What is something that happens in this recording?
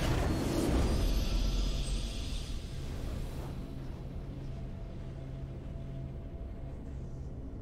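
A triumphant musical fanfare swells and slowly fades.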